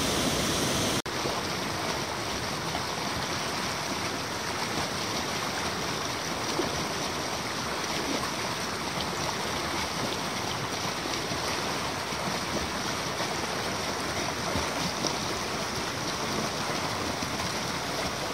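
A river rushes steadily over rocks in rapids.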